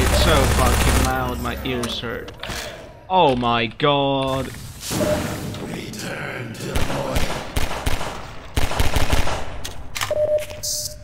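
Gunshots bang in quick bursts.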